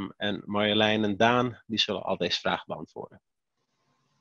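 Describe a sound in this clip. A young man speaks calmly through a headset microphone on an online call.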